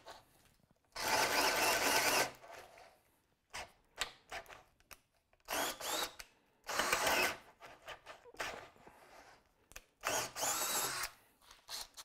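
A cordless drill whirs in short bursts as a hole saw cuts into wood.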